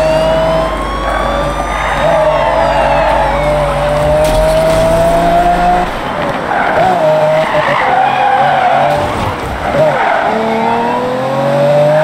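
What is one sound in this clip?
Tyres screech on asphalt as the car drifts through bends.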